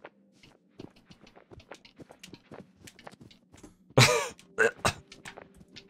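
Quick footsteps patter up stone steps.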